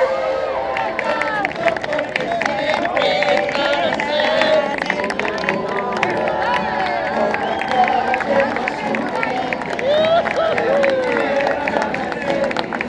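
Men and women sing together.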